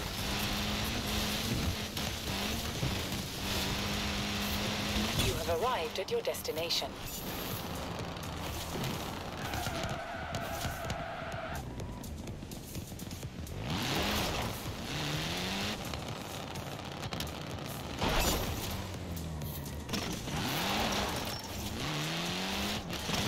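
A rally car engine roars and revs through gear changes.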